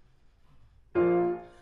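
A piano plays a chord.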